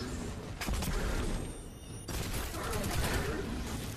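Explosions burst loudly in a video game.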